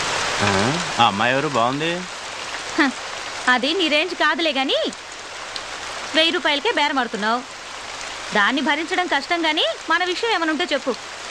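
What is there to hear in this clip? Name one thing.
A woman speaks with feeling.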